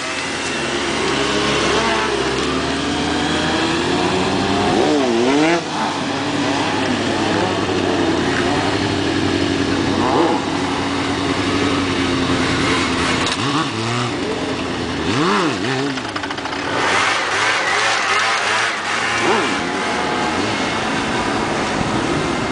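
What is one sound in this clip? A motorcycle engine idles and revs sharply up and down close by.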